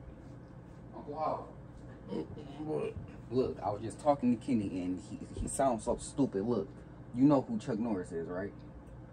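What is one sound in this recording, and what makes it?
A man speaks close by in a calm voice.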